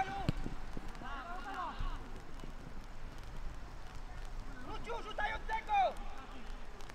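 Young men shout to each other across an open football pitch outdoors.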